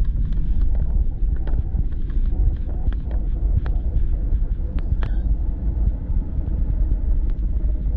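A jet engine roars in a deep, steady rumble from inside an airplane cabin.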